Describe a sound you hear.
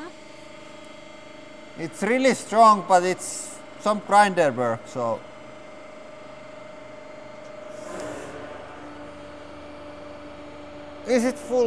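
A hydraulic press hums steadily as its ram lowers.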